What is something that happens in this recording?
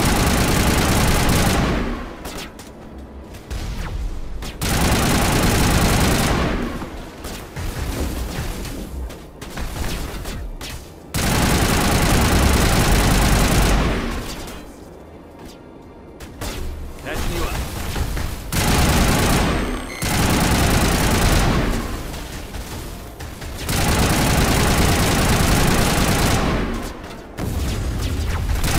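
Loud gunfire and energy blasts boom in repeated bursts.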